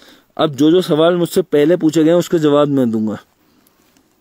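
A young man speaks close to the microphone with animation.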